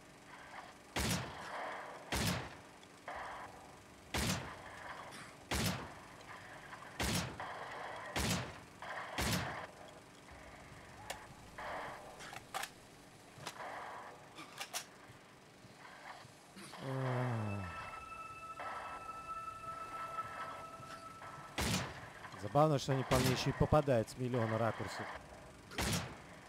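Gunshots ring out in quick, repeated bursts.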